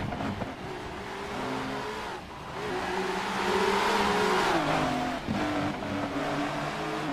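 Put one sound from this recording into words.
Racing car engines roar loudly as the cars speed past, their pitch climbing and dropping with each gear change.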